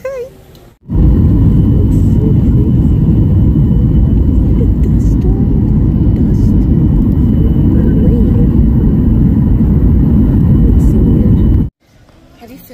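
A loud jet engine roars steadily from inside an airplane cabin.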